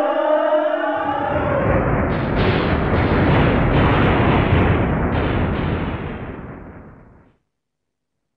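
A huge explosion rumbles loudly and slowly fades away.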